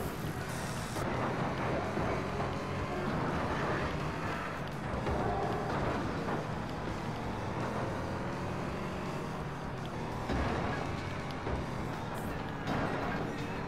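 Race car engines roar loudly as the cars speed off over dirt.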